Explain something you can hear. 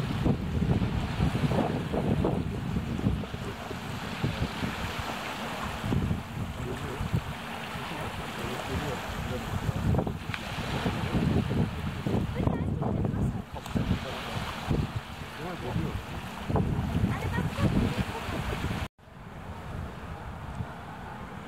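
Water laps and splashes against a quay.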